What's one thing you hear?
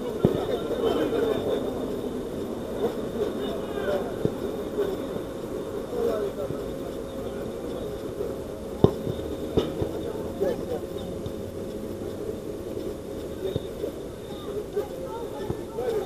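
Men shout and call to each other outdoors, some distance away.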